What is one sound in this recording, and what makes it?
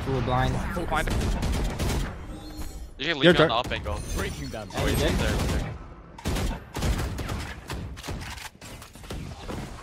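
Rapid gunshots crack in short bursts.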